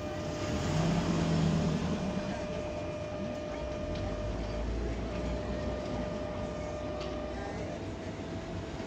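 A tram idles with a steady electric hum.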